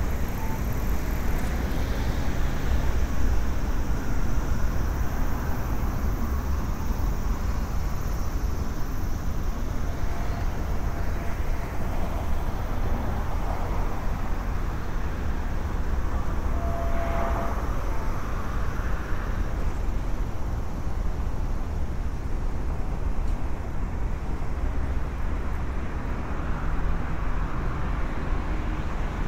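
City traffic hums and passes nearby.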